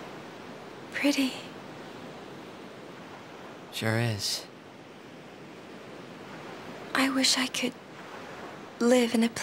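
A young woman speaks softly and wistfully, close by.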